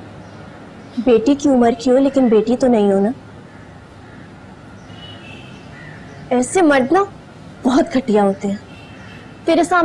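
A young woman speaks close by in an upset, pleading voice.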